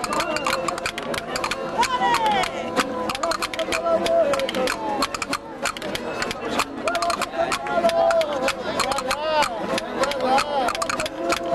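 A frame drum is beaten in a quick, steady rhythm.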